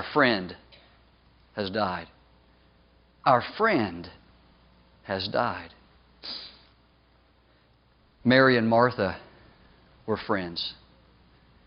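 A man speaks with animation into a microphone in a large echoing hall, in short bursts with pauses.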